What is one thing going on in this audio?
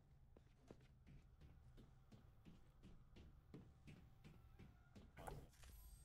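Footsteps climb hard stairs at a steady pace.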